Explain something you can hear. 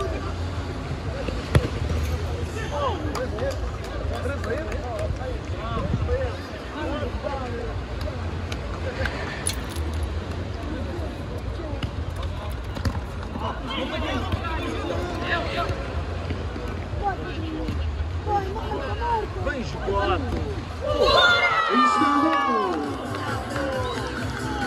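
Spectators shout and chatter around an outdoor court.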